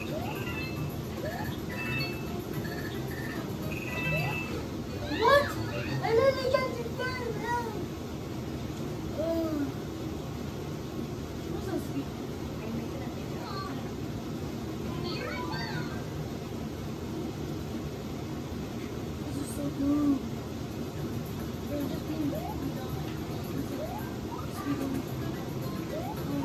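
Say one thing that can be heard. Cheerful video game music plays from a television.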